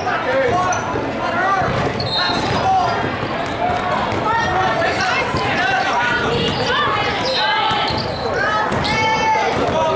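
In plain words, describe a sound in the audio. A crowd of young women and adults chatters and calls out in a large echoing gym.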